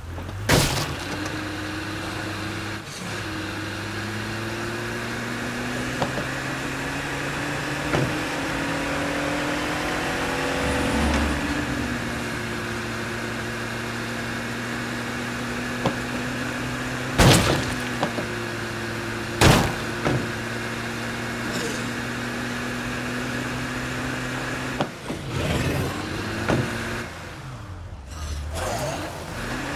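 A car engine hums steadily as the car drives along a road.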